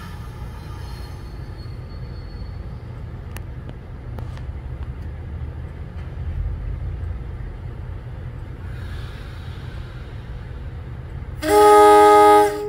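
A train rumbles as it slowly approaches.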